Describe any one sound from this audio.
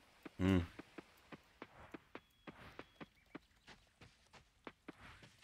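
Footsteps patter quickly on a dirt path.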